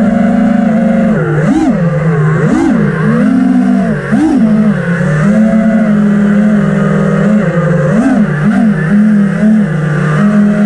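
A small drone's motors buzz loudly, their whine rising and falling sharply in pitch as it swoops around.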